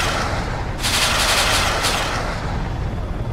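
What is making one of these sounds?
An explosion bursts with a loud rushing roar.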